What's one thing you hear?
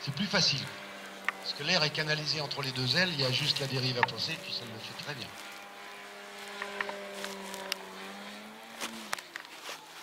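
A model plane's engine buzzes overhead, its pitch rising and falling.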